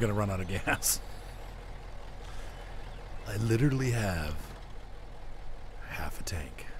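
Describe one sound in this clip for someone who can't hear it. A heavy truck engine rumbles low and steady.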